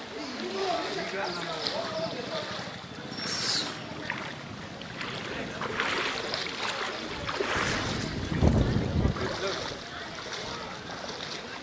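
Feet splash and slosh through shallow water.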